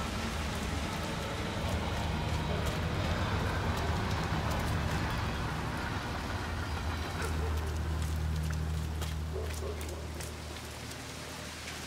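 Footsteps tread on wet ground.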